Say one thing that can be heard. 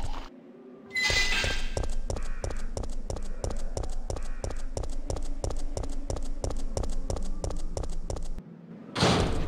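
Footsteps run quickly and evenly on hard ground.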